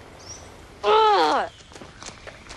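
A young woman calls out loudly nearby.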